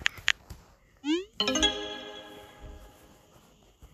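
A phone message chime rings out and fades.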